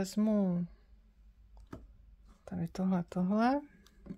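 A deck of cards is set down softly on a wooden table.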